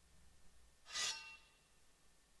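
A sword rings out with a bright metallic shimmer.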